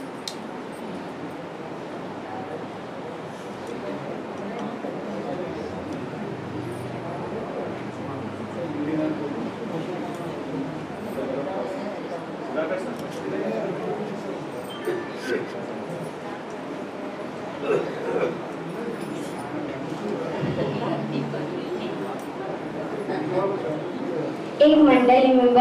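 A young girl speaks into a microphone, heard through a loudspeaker in an echoing room.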